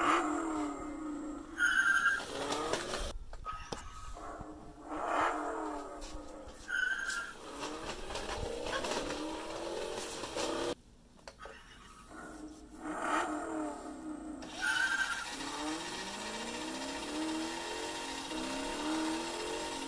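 A toy car plays a revving engine sound through a small tinny speaker.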